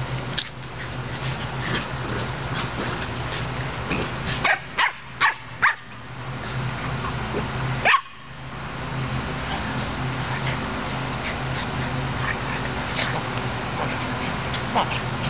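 Puppies whimper and yelp close by.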